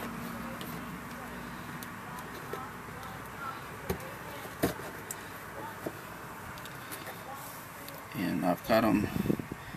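Small plastic switches click and rattle as a hand pulls them loose.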